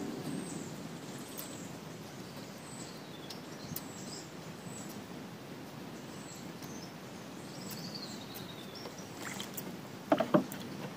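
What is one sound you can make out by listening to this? Water laps gently against a wooden boat.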